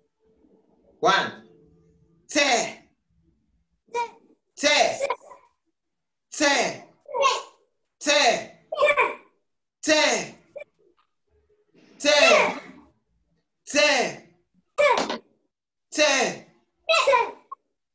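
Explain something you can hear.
A young man chants short rhythmic words one at a time, with pauses between.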